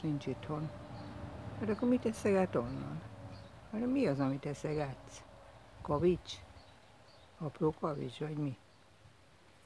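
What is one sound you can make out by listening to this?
A pigeon coos nearby.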